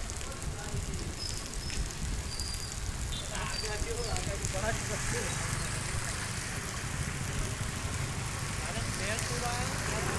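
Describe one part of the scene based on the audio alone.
Flames roar and crackle from a burning transformer.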